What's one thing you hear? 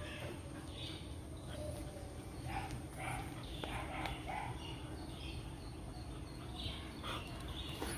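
A dog pants softly close by.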